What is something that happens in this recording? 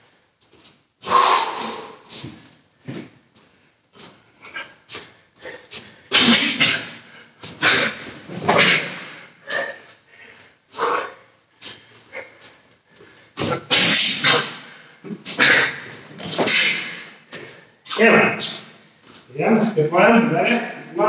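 A middle-aged man speaks with animation close by in an echoing room.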